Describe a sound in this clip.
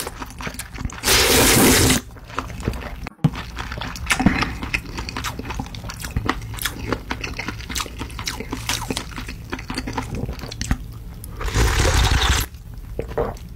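A man sips broth from a ladle with a loud slurp.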